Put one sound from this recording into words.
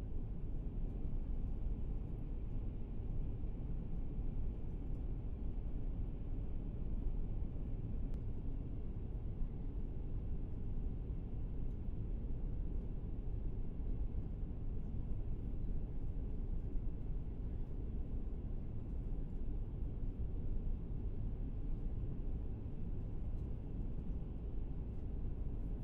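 A train rumbles low and steadily as it runs along.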